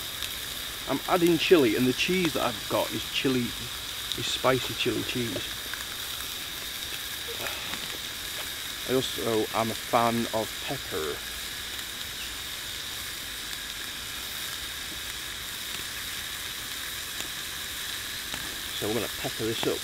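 A small fire crackles softly.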